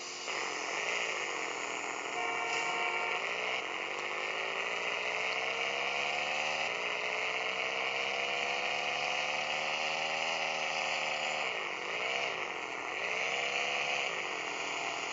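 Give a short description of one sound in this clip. A car engine revs, its pitch rising slowly and dipping.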